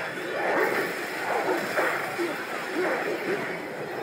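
Lightning crackles and zaps.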